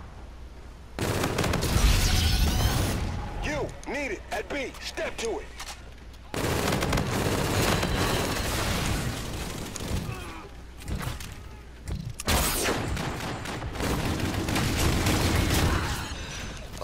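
Gunfire from an automatic rifle rattles in bursts.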